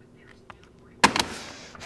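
A phone handset is slammed down onto its hook with a loud clatter.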